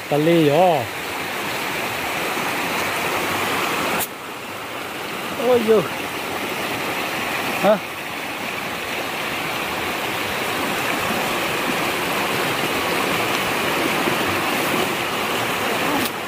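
A shallow stream rushes and splashes steadily over rocks nearby.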